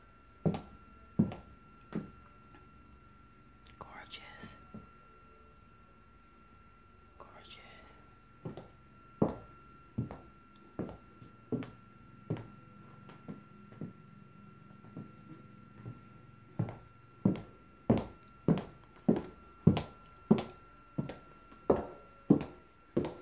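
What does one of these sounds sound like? Footsteps thud on a hard floor.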